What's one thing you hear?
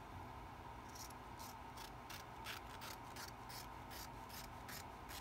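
Scissors snip several times.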